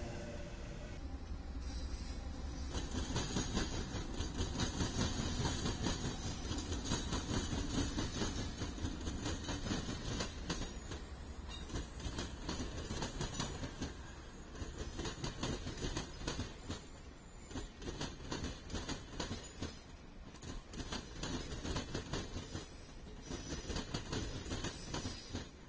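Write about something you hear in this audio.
A long train rolls by with wheels clattering on the rails.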